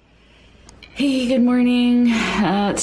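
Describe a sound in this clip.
A woman speaks cheerfully through a laptop microphone.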